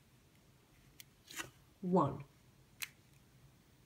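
Plastic puzzle cube layers click and clack as they are turned by hand.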